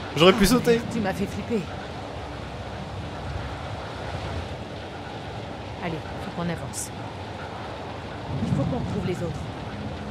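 A young woman speaks quietly and anxiously.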